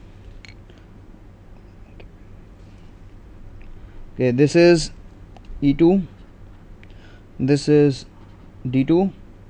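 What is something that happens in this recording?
A marker pen squeaks and scratches softly on paper.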